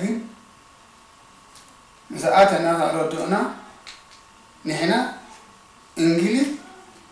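An elderly man speaks calmly and close by, in short phrases.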